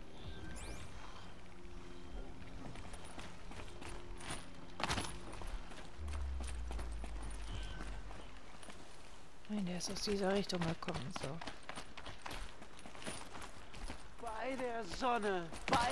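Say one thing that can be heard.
Footsteps crunch over rock and grass.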